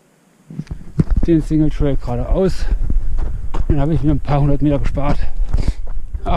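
A man talks breathlessly close to the microphone.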